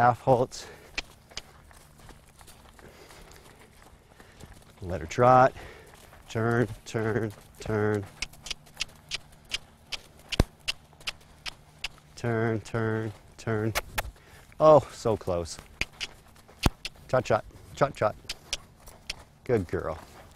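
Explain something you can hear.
A horse's hooves thud on soft dirt in a steady rhythm.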